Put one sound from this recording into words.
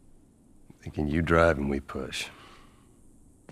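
A young girl speaks quietly.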